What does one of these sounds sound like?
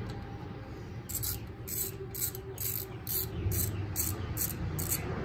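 A ratchet wrench clicks in quick bursts.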